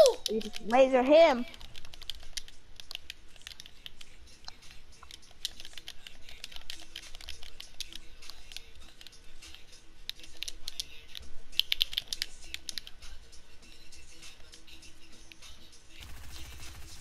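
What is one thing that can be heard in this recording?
Building pieces snap into place with rapid clicks.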